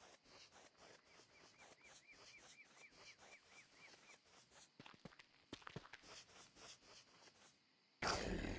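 Quick footsteps patter steadily on soft ground.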